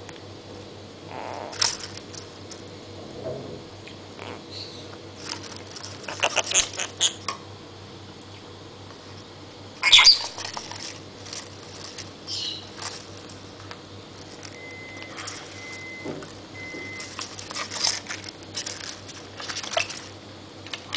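A small parrot rustles and scratches inside a paper tube.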